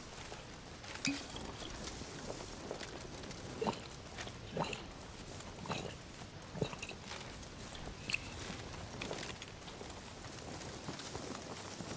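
Footsteps swish softly through tall grass.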